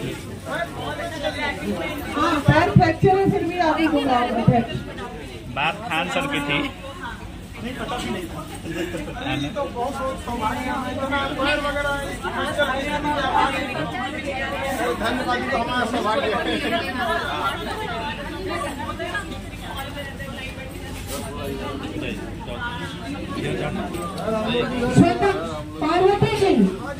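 A group of men and women chatter in the background.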